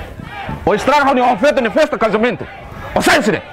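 A man speaks angrily up close.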